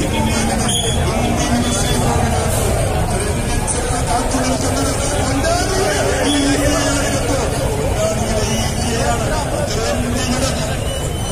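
A large crowd of men murmurs and chatters outdoors.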